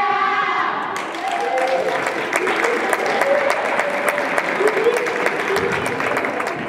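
A group of young women clap their hands rapidly.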